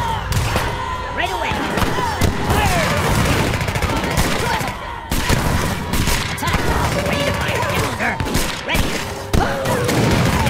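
Cannons boom heavily now and then.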